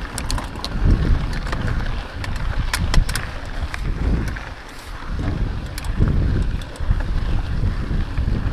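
Bicycle tyres crunch and rattle over a dirt trail.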